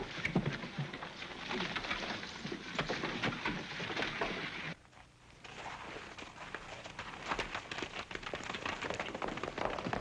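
Horses' hooves clatter on hard ground.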